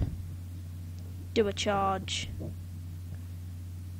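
A card game plays a whooshing sound effect as a card is picked up.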